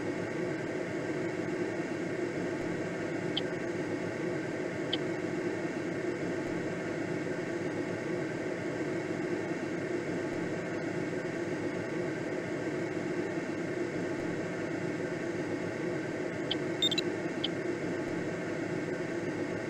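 Wind rushes steadily past a glider's canopy.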